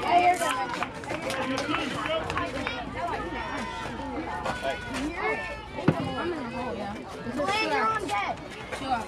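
Children and men talk and call out nearby, outdoors.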